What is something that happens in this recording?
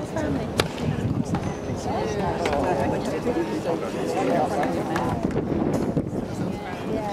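Several men and women chat casually nearby in a lively crowd outdoors.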